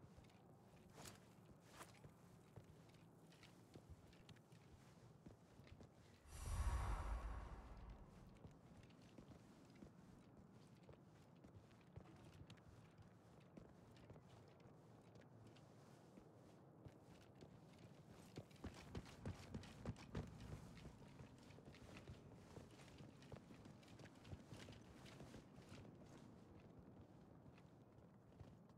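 Footsteps shuffle softly over a stone floor.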